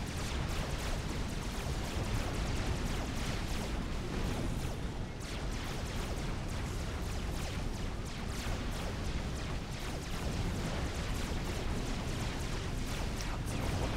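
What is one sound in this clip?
Rapid gunfire crackles and pops with small explosions.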